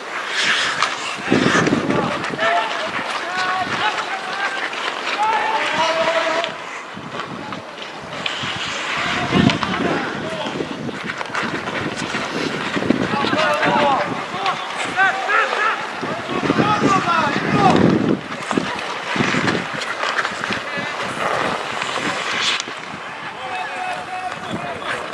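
Skate blades scrape and hiss on the ice.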